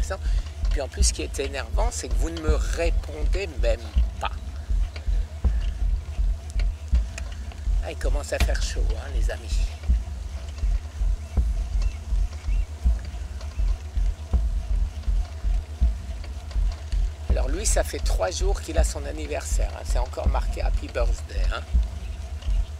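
An elderly man speaks close to the microphone.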